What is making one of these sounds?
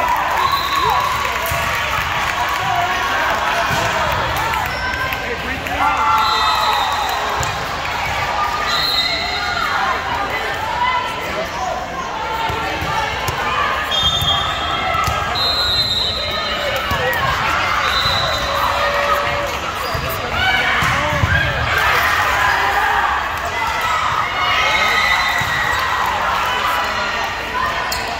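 Young women call out and chatter in a large echoing hall.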